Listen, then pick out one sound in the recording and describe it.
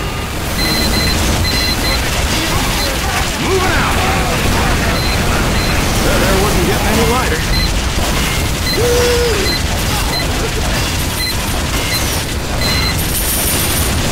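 A metal wrench clangs against a machine again and again.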